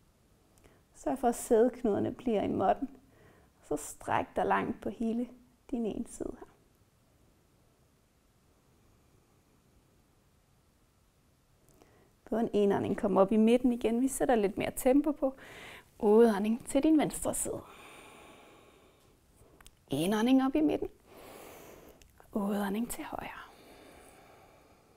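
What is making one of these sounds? A young woman speaks calmly and clearly into a close microphone, pausing between phrases.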